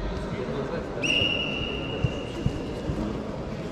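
A referee blows a whistle briefly.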